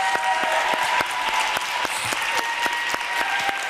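A woman claps her hands close by.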